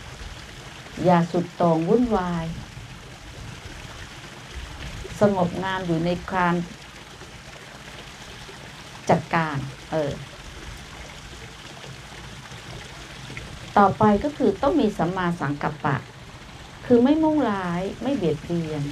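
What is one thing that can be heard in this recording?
An elderly woman speaks slowly and calmly into a microphone, in short phrases with pauses.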